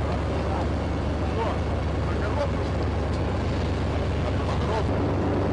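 Several men talk and call out nearby.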